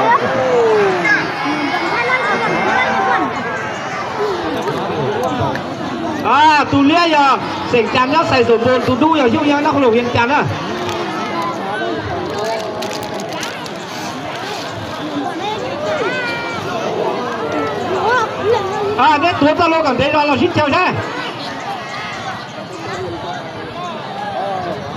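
A large outdoor crowd shouts and cheers.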